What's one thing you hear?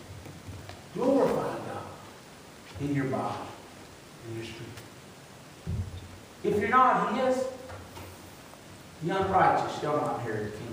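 A man preaches through a microphone in short, emphatic phrases with pauses, in an echoing hall.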